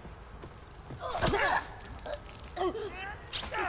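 A young girl speaks in a tense, shaky voice.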